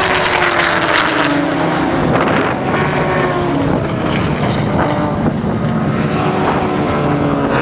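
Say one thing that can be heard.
Racing car engines roar loudly as cars speed past.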